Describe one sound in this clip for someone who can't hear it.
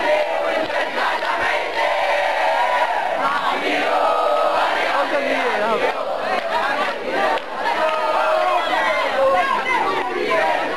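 Young men cheer excitedly nearby.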